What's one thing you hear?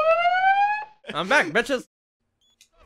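A man speaks with animation into a microphone.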